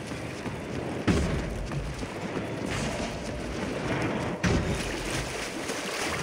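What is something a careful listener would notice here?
Footsteps crunch over gravel and dirt.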